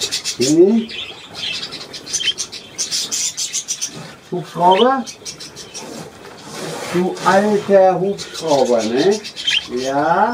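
Budgerigars chatter and chirp.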